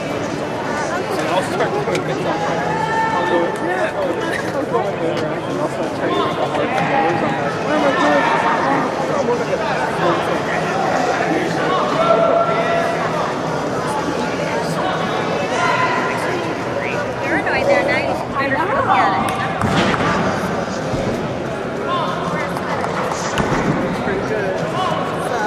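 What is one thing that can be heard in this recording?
A gymnast's hands creak and thud on a high bar.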